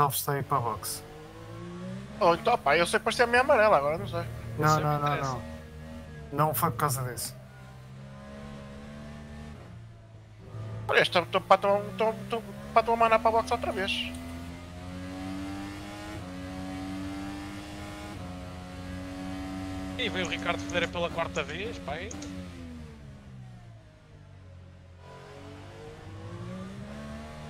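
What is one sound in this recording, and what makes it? An open-wheel race car engine revs, rising and dropping in pitch through gear changes.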